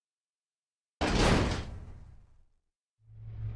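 A heavy metal door bangs shut.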